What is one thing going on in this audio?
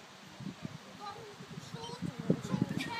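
A woman calls out commands to a dog at a distance outdoors.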